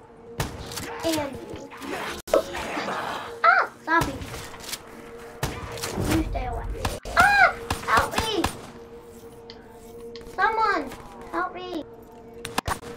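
A child talks and exclaims excitedly nearby.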